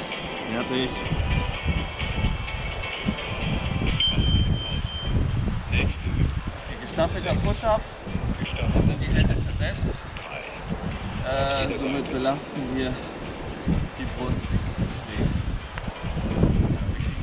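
A young man talks calmly close by, outdoors.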